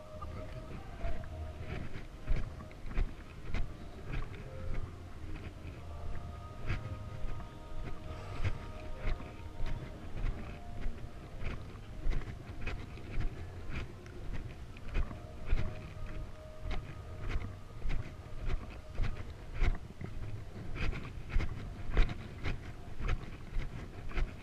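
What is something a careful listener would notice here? Footsteps walk steadily on pavement outdoors.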